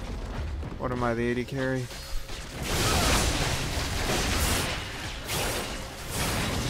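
Fantasy battle sound effects clash, crackle and whoosh.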